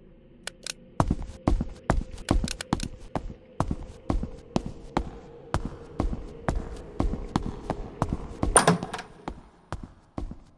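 Footsteps tap steadily across a hard floor.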